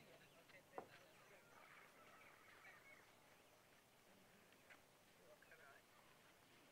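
Men and women murmur quietly outdoors.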